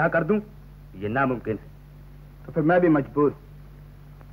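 A man speaks with animation, heard through an old film soundtrack.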